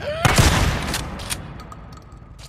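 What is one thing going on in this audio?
A shotgun fires a loud blast that echoes.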